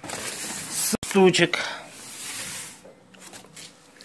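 A hand brushes and rubs against a cardboard box.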